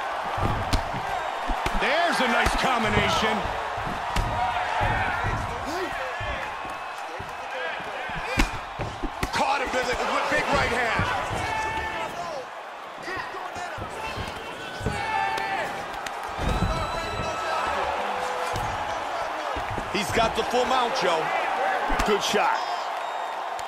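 Punches and kicks land with dull thuds.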